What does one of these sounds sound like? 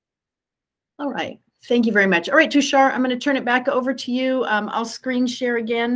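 A middle-aged woman speaks calmly through an online call.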